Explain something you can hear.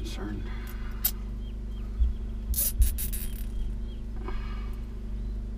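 Battery cables rattle and click against metal terminals as they are fitted.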